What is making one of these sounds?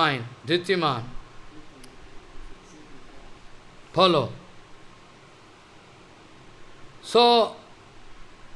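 An elderly man chants short drawn-out phrases into a microphone, with pauses between them.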